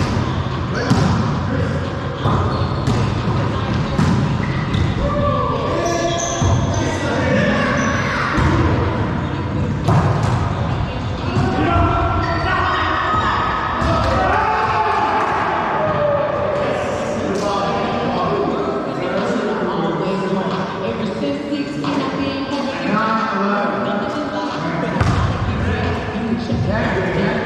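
A volleyball thuds sharply in an echoing hall.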